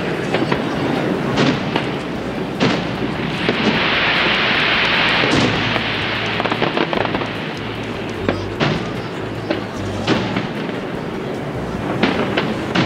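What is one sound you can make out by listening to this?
Fireworks burst with loud booms and bangs, echoing.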